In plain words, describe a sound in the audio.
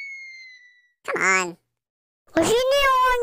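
A young boy calls out brightly close by.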